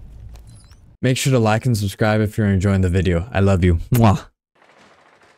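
Another young man speaks quickly and directly into a microphone.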